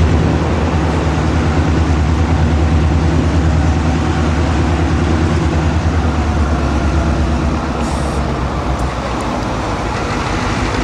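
A diesel locomotive engine rumbles deeply as it approaches.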